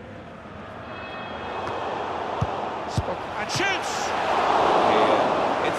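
A crowd in a stadium roars, swelling louder.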